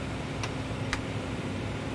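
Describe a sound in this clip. Switches click sharply.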